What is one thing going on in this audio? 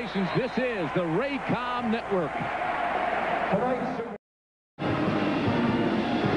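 A large crowd cheers and shouts loudly in an echoing arena.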